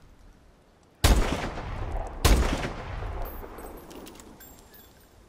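A rifle fires two loud booming shots that echo away.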